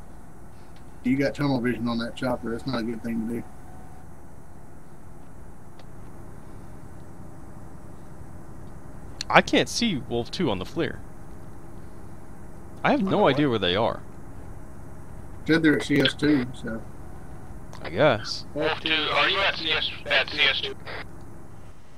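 A man talks calmly into a headset microphone, in short bursts.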